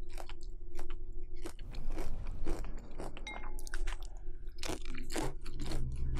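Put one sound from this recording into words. A woman crunches food loudly close to a microphone.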